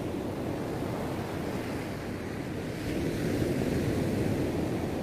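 Waves break and wash up on a beach nearby.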